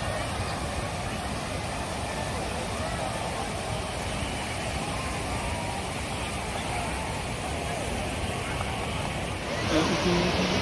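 A crowd of people chatter and shout in the distance outdoors.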